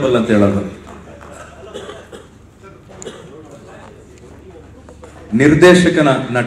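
A man speaks with animation into a microphone over loudspeakers in a large echoing hall.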